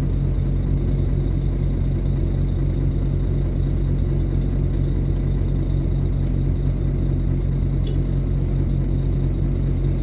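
A car engine hums as the car rolls slowly past at close range.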